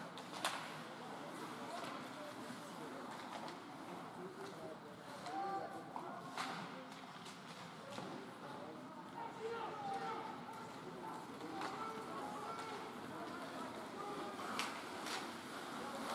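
Hockey sticks clack against a puck in a large echoing rink.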